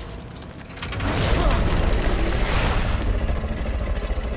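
A body bursts with a loud, rumbling wet blast.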